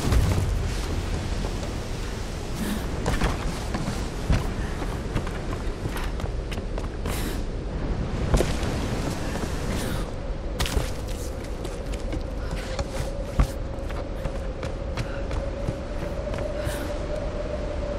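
Wind blows steadily in a storm.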